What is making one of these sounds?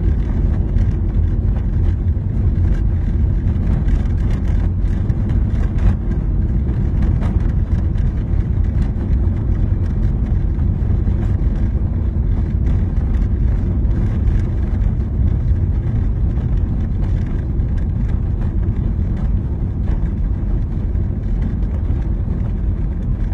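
Tyres rumble and crackle over a rough dirt road.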